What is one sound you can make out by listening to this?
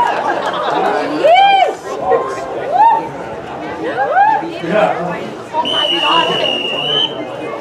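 A crowd of spectators shouts and cheers outdoors.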